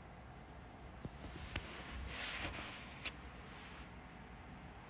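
Bedding rustles as a young woman shifts close by.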